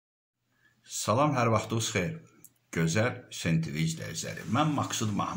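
A middle-aged man speaks calmly and close to the microphone.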